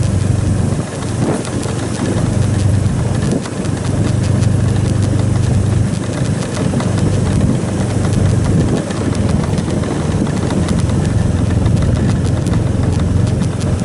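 Tyres crunch and rumble over a rough dirt road.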